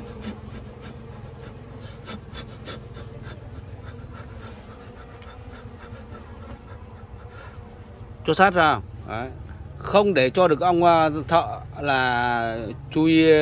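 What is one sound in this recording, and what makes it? Bees buzz in a steady, close hum.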